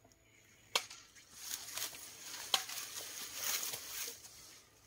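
Leafy plants rustle as someone pushes through dense brush.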